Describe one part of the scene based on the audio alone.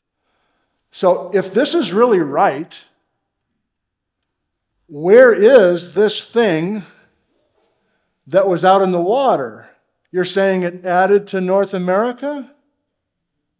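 A man lectures with animation through a microphone.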